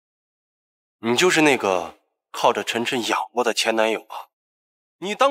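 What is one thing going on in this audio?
A young man speaks with shock and indignation.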